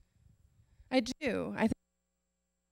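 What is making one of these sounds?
Another woman speaks briefly into a microphone.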